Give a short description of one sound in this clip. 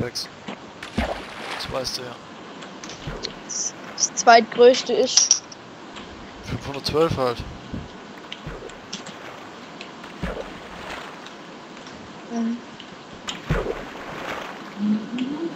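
Water splashes as something drops into it.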